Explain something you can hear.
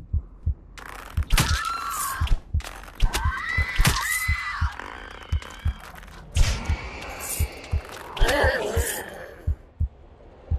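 A bow twangs as arrows are loosed in quick succession.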